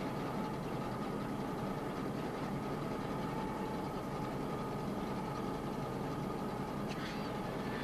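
A fire roars and crackles outdoors.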